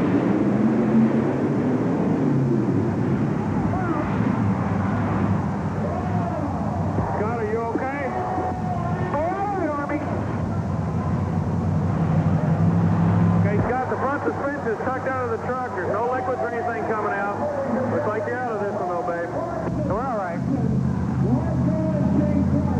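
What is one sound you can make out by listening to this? Monster truck engines roar loudly in a large echoing arena.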